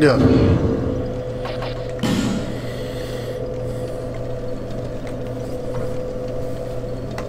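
A young man speaks casually into a microphone.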